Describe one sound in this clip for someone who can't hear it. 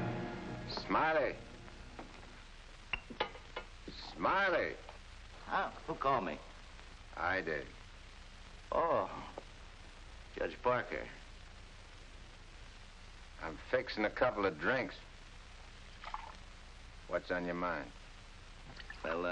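A man speaks in a low, calm voice close by.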